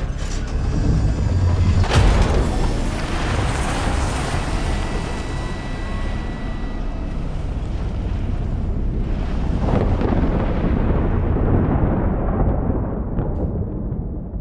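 A heavy vehicle's engine rumbles and fades into the distance.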